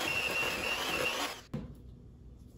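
An electric hand mixer whirs loudly.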